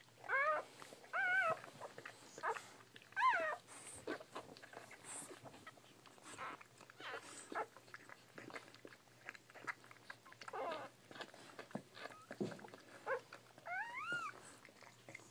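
Newborn puppies squeal and whimper in high, thin cries.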